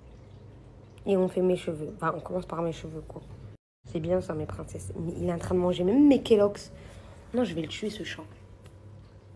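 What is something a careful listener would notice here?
A young woman talks with animation, close to a phone microphone.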